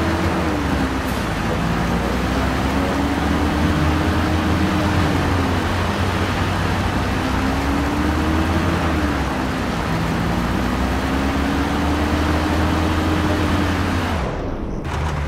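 A vehicle engine rumbles steadily and shifts pitch as it drives.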